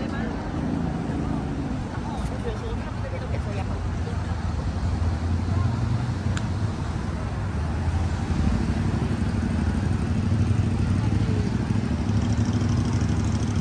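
A crowd of pedestrians murmurs outdoors.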